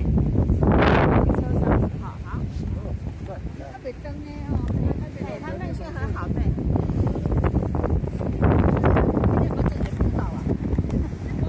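Several women and men talk together nearby.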